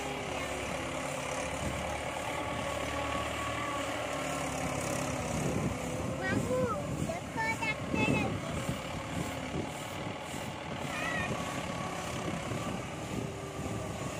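A tractor engine chugs steadily close by.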